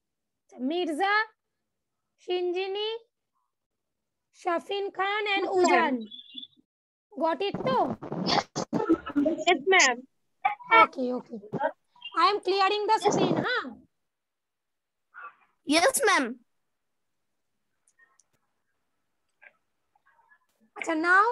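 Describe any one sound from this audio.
Young children speak in short bursts over an online call.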